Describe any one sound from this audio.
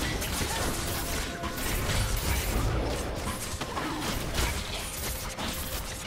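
Magic spells crackle and burst in a busy fight, with heavy booming impacts.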